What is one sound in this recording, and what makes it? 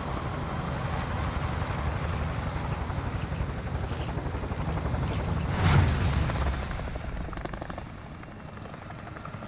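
Helicopter rotors thump and roar steadily.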